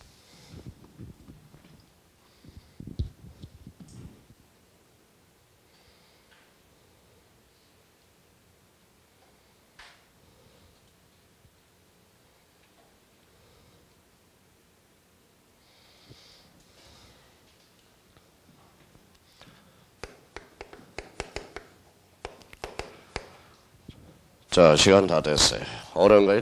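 A middle-aged man speaks into a microphone in a calm, lecturing voice.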